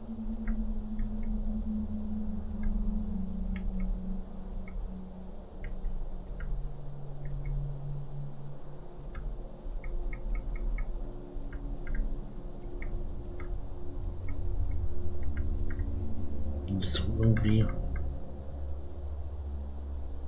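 Soft clicks tick now and then.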